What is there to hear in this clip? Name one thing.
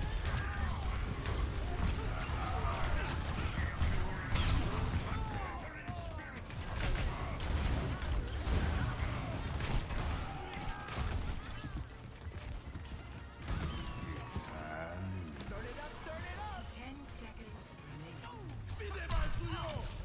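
Rapid gunfire and blasts crackle in a fast video game fight.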